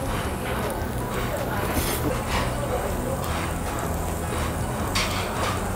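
A man slurps and chews food noisily.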